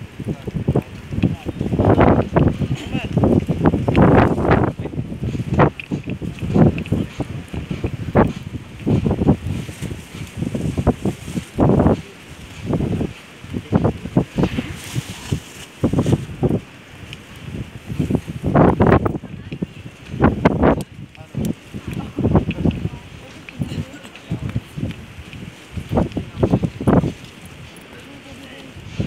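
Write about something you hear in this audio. Several adults talk nearby outdoors.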